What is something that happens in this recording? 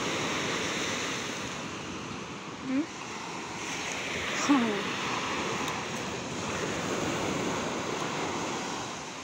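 Waves wash and break on the shore nearby.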